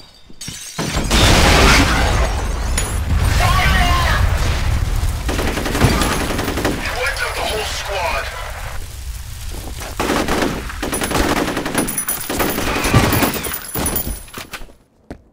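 Rapid gunfire rattles and echoes.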